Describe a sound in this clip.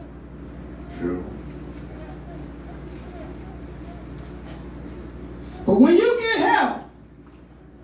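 A woman speaks loudly through a microphone.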